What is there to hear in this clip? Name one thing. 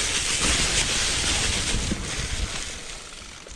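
Bicycle tyres crunch over dry leaves.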